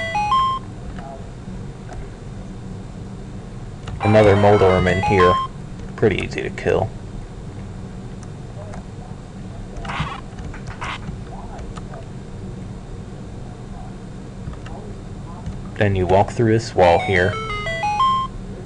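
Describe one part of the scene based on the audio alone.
Chiptune game sound effects beep and chirp in bursts.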